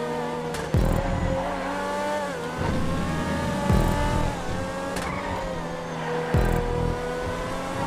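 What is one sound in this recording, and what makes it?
A sports car engine roars at high revs and shifts gears.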